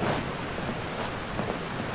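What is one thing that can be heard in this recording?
Footsteps tap quickly over wooden planks.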